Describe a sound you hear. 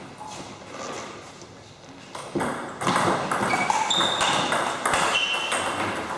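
A ball clicks back and forth on a table tennis table and paddles.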